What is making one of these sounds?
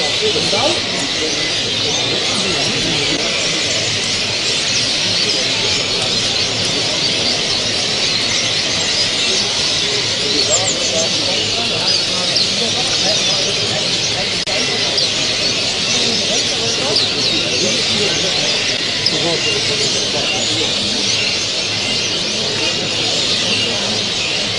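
Many caged birds chirp and twitter all around.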